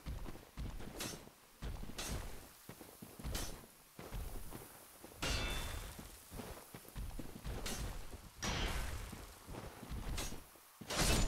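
Sword blows clash and thud against a large creature.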